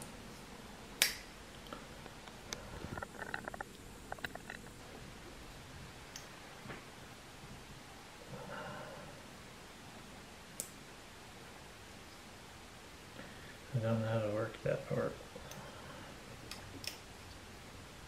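A metal multitool clicks and snaps as it is opened and folded.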